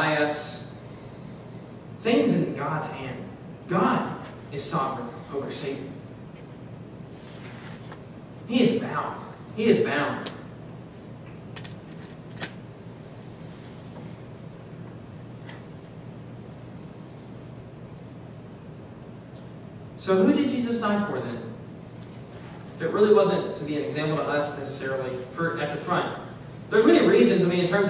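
A young man speaks calmly through a microphone, in a reverberant hall, with long pauses.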